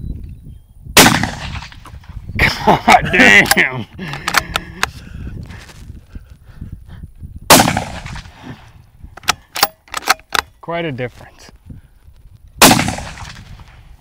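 A rifle fires sharp shots outdoors.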